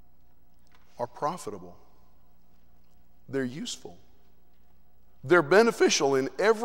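A man speaks calmly into a microphone in a large echoing hall, in short phrases with pauses.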